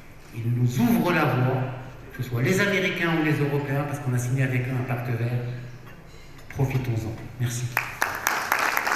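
A man speaks forcefully into a microphone.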